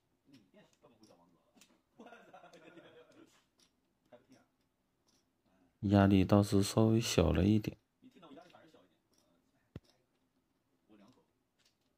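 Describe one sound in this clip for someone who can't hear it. Mahjong tiles clack softly on a table.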